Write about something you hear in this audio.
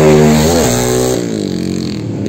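A drag-racing motorcycle engine revs and drops back.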